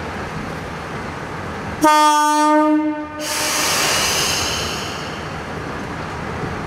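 A diesel train engine idles steadily.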